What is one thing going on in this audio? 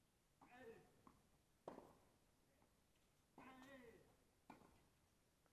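Tennis balls are struck with rackets in a rally outdoors.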